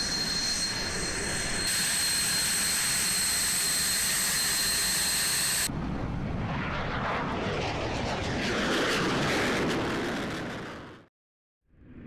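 A jet engine whines and roars loudly close by.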